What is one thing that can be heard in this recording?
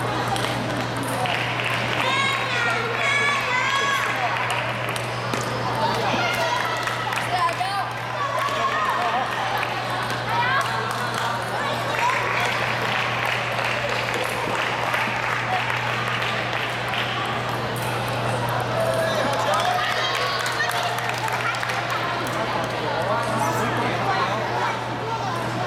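Children chatter and call out in the background.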